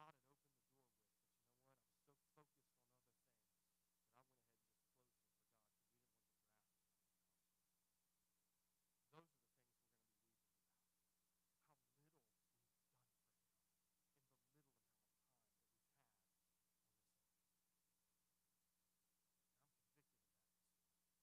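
A man speaks calmly through a microphone in a large echoing hall, with long pauses.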